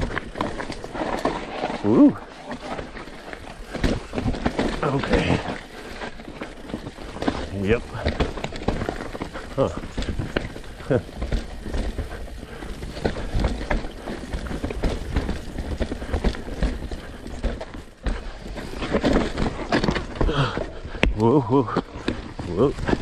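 A bicycle rattles and clanks over bumps.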